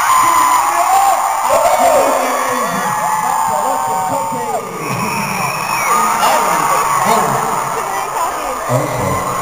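A crowd cheers and screams close by.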